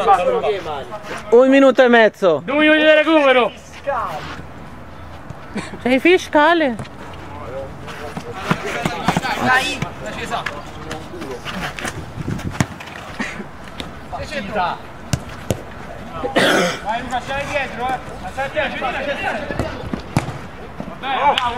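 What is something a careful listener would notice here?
Young men shout loudly to each other outdoors.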